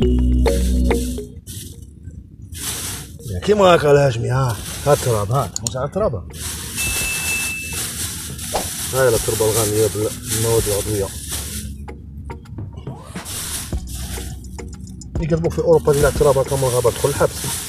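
Hands scoop and pour loose soil.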